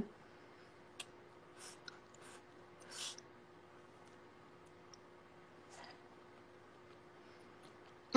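A young woman chews food with soft mouth sounds.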